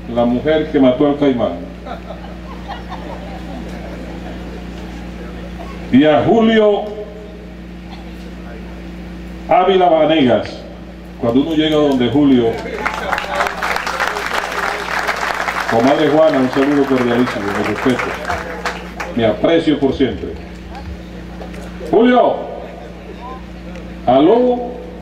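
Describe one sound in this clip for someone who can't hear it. A man speaks slowly and forcefully through a loudspeaker outdoors, pausing between phrases.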